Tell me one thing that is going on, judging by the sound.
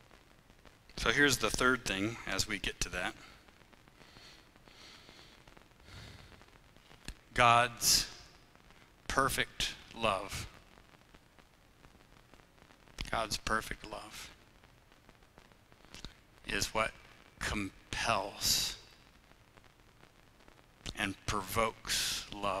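A man speaks calmly into a microphone in short phrases with pauses, in a room with a slight echo.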